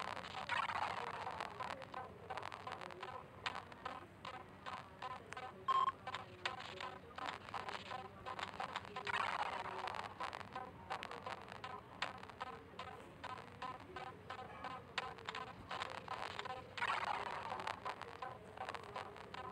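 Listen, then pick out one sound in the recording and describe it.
Short electronic blips sound in a quick, steady rhythm.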